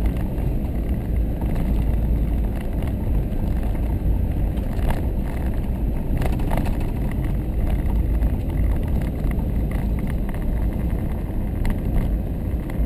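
Tyres crunch and rattle over a rough gravel road.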